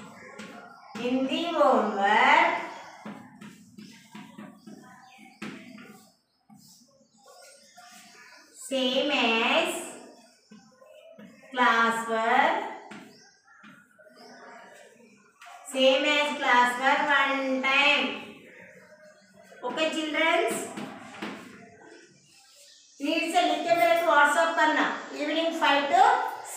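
A woman speaks clearly and slowly, close by.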